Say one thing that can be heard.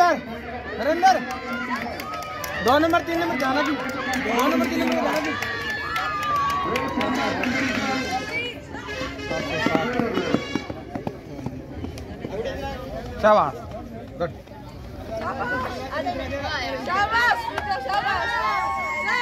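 A crowd of young people cheers and shouts outdoors.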